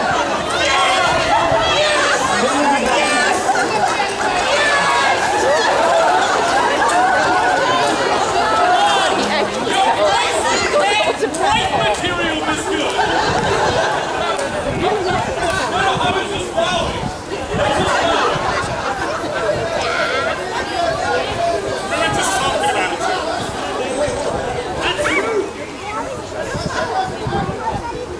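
Men sing loudly together outdoors.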